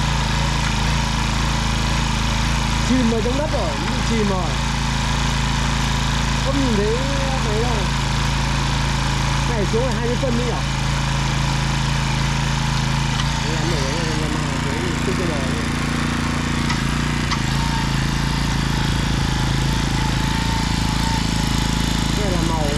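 A small petrol engine runs with a steady loud drone.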